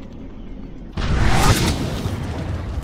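A gun fires a single loud blast.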